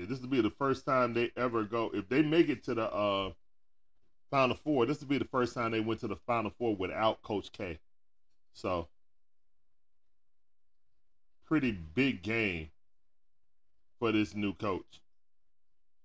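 A man talks with animation into a close microphone, pausing now and then.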